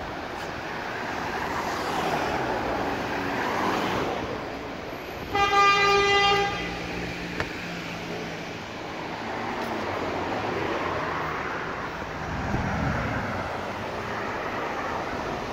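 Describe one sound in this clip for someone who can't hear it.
Cars drive past on a road outdoors.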